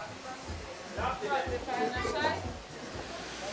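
Women chatter and laugh nearby in a lively group.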